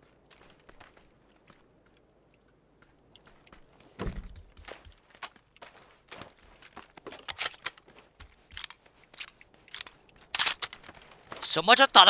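Footsteps thud across the ground at a steady walking pace.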